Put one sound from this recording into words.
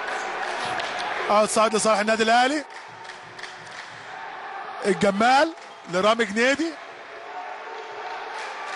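A crowd murmurs and cheers in a large echoing hall.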